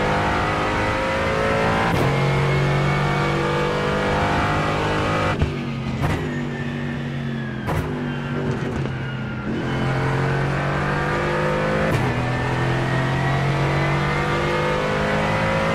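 A race car engine roars loudly, its pitch falling and climbing as it accelerates and brakes.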